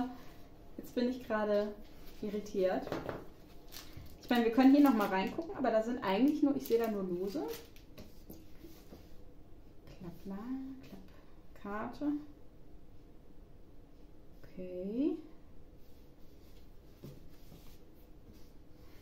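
Paper cards rustle and tap softly.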